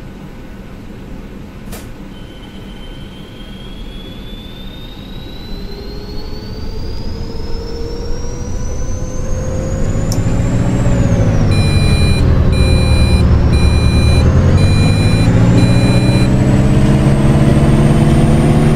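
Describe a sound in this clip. A bus engine rumbles and grows louder as the bus speeds up.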